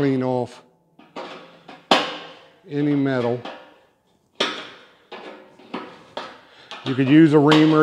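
A metal bowl is tapped and rings with a fading clang.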